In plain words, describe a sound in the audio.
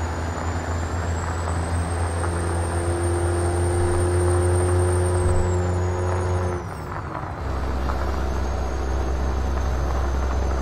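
Tyres rumble over a gravel road.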